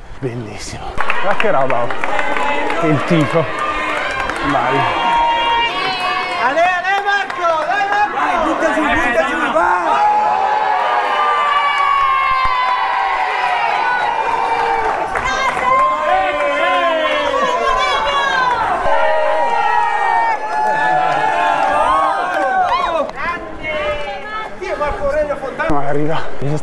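A crowd of men and women cheers and shouts loudly close by.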